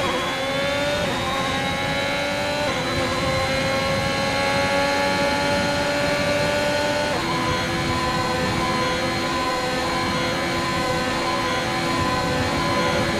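A racing car engine screams at high revs, rising in pitch and dropping briefly at each gear change.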